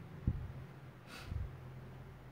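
A woman sighs softly close to the microphone.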